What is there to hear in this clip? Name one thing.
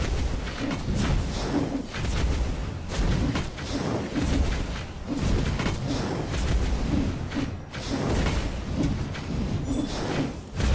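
Magic blasts and weapon hits crash again and again in a fight.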